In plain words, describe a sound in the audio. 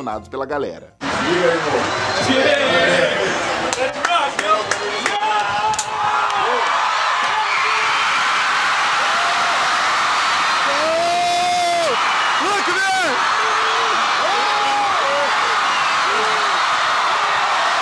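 A huge crowd roars and cheers outdoors.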